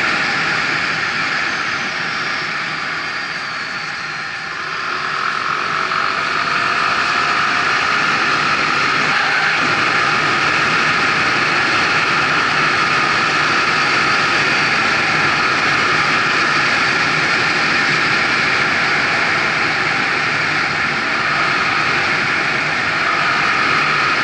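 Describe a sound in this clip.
An engine hums and revs as a vehicle speeds up and slows down.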